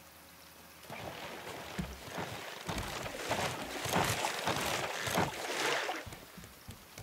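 Water splashes and churns loudly as a shark thrashes close by.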